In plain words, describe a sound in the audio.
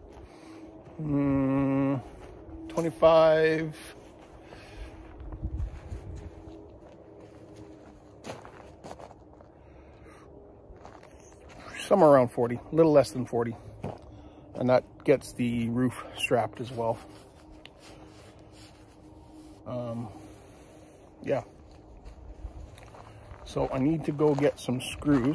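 A man talks casually, close by, in short bursts.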